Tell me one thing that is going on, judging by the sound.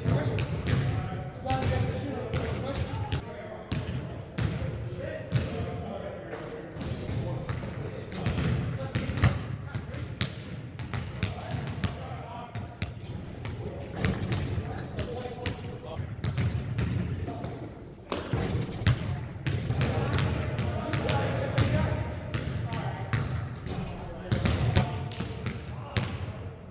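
Basketballs bounce on a hardwood floor, echoing in a large hall.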